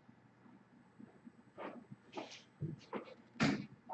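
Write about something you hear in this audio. Footsteps thump across a room nearby.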